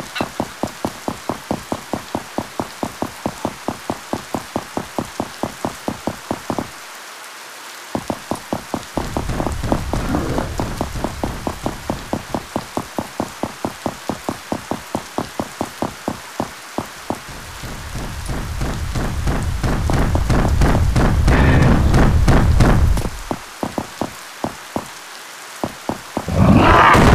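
Footsteps tap steadily on hard stone and then on creaky wooden boards.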